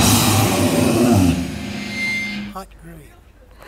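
A rock band plays loudly with distorted electric guitars and drums.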